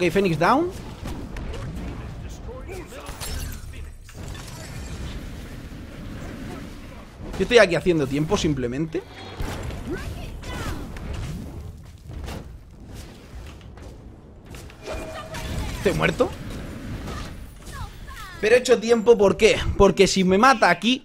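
Magic blasts and fiery explosions whoosh and crackle.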